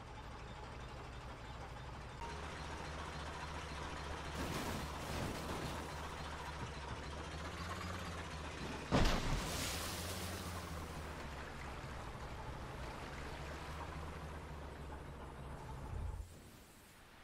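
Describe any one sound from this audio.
A tractor engine chugs steadily.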